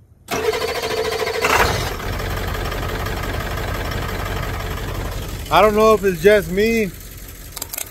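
A truck engine idles nearby with a steady rumble.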